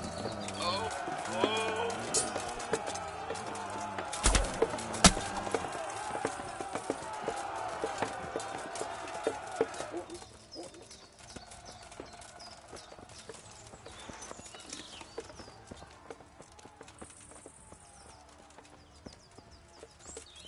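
Footsteps crunch quickly on a gravel path.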